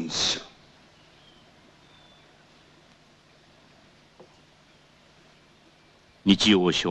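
An elderly man chants in a loud, drawn-out voice nearby.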